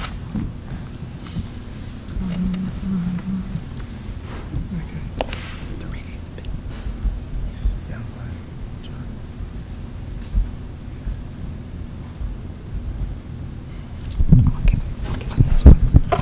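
A man talks quietly close to a microphone.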